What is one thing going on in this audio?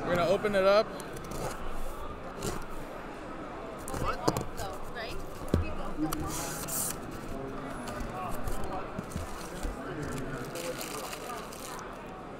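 Cardboard scrapes and rustles as a box is cut open.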